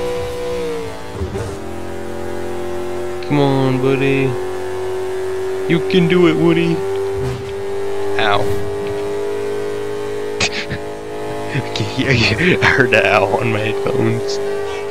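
A car engine roars steadily at high speed.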